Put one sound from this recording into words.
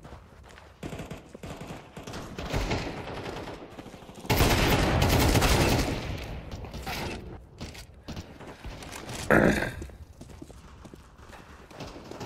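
A young man talks through a close microphone with animation.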